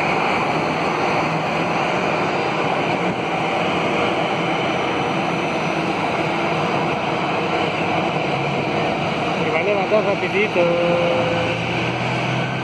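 A Boeing 747 jet taxis with a steady engine roar.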